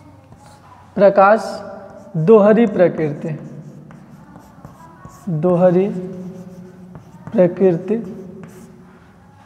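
A young man speaks calmly in a slightly echoing room.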